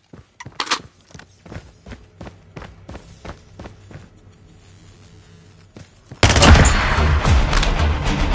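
A weapon clicks and clatters as it is reloaded.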